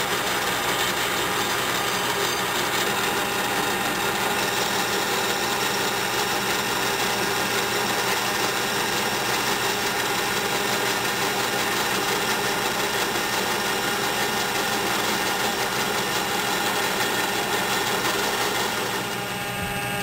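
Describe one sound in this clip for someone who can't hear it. A cutting tool scrapes and hisses against spinning metal.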